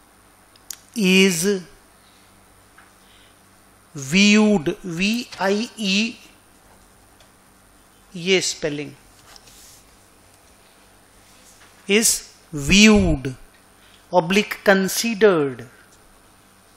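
A middle-aged man speaks calmly in short phrases into a nearby microphone.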